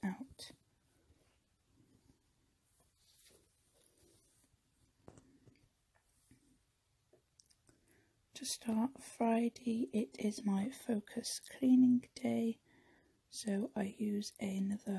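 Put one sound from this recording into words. Paper rustles softly as hands smooth a page.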